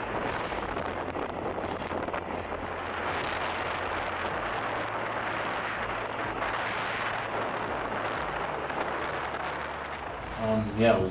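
Wind rushes loudly past while riding a bicycle fast along a road.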